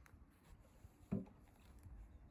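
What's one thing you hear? A wooden guitar body bumps with a hollow knock.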